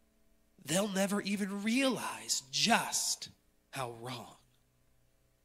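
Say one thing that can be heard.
A man speaks with feeling into a microphone in a large echoing room.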